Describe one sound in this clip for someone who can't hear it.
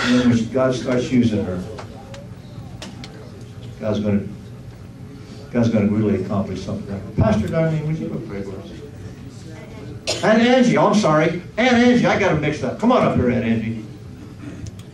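An older man speaks loudly through a microphone.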